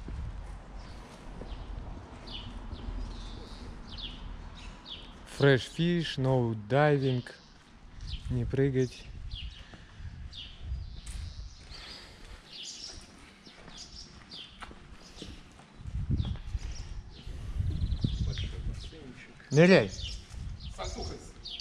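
Footsteps scuff on concrete.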